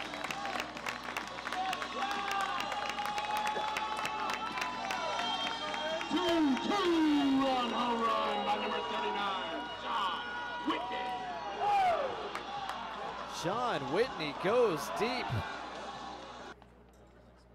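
A crowd cheers and applauds outdoors.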